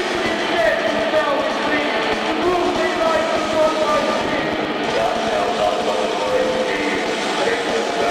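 A rock band plays loudly in an echoing room.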